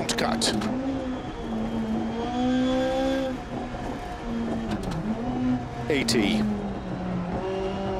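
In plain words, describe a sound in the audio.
A car engine drones and revs up and down as it shifts through gears.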